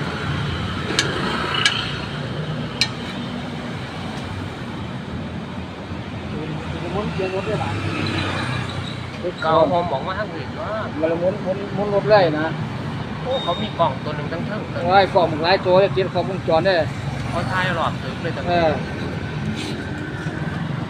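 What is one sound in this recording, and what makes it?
A metal spatula scrapes and taps against a griddle.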